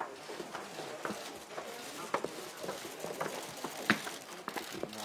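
Footsteps climb concrete stairs.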